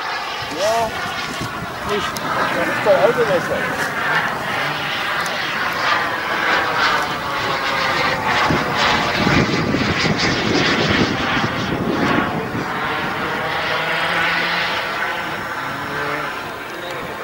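A jet engine roars loudly overhead, swelling and then slowly easing off.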